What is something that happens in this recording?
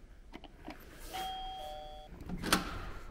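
A doorbell chimes.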